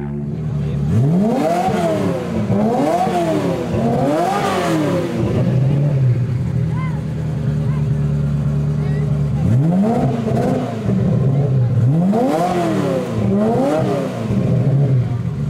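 A sports car engine revs up and down repeatedly.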